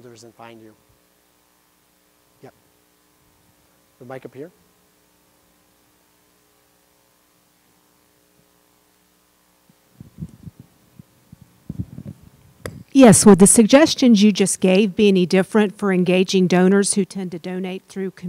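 A middle-aged man speaks through a microphone, quietly at first, then loudly and with animation.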